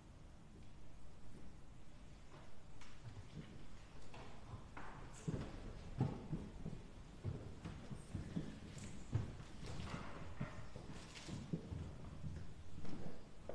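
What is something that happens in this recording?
Robes rustle as people stand up.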